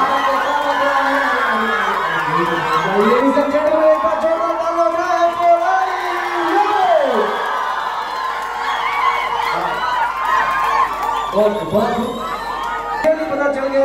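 A large crowd cheers and screams loudly.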